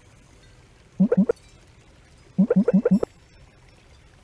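Short electronic beeps sound in quick bursts.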